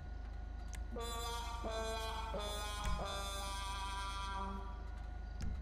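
A car horn plays a sad descending trombone tune.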